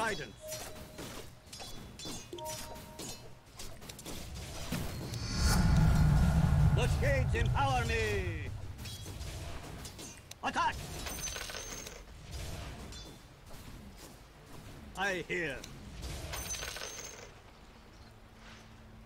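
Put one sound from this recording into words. Video game battle sounds clash and whoosh.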